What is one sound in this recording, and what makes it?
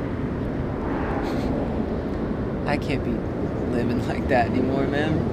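A young man speaks quietly and calmly nearby.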